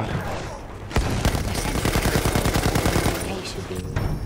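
A heavy machine gun fires a rapid burst.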